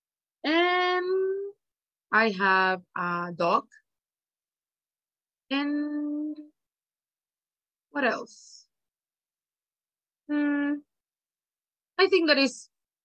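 A woman speaks slowly and clearly over an online call, in short phrases with pauses.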